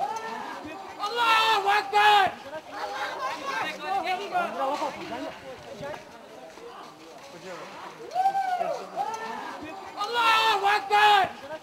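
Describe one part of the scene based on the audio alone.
A crowd murmurs and talks in the background.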